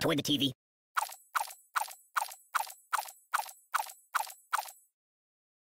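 Short bright chimes ring in a quick, even series.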